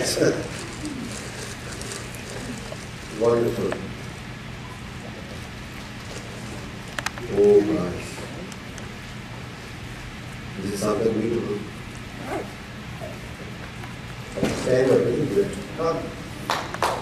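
A man speaks in short phrases through a microphone in a large hall.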